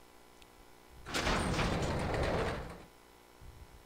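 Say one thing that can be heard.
A heavy door creaks slowly open.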